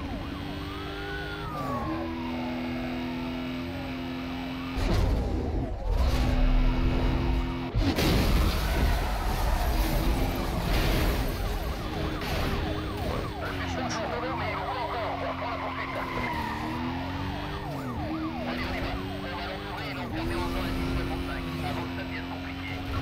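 Police sirens wail nearby.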